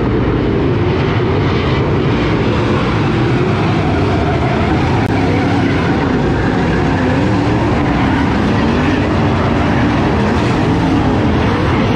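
Race car engines roar loudly as the cars circle outdoors.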